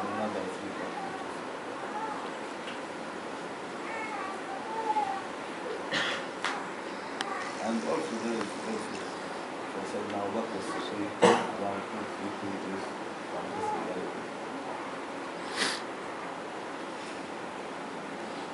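An elderly man reads aloud calmly from a book, close by.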